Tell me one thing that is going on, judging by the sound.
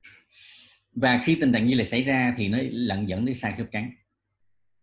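A man speaks calmly through a microphone, as in an online call.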